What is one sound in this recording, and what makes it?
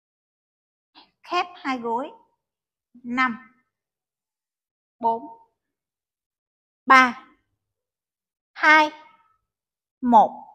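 A woman calls out short instructions loudly.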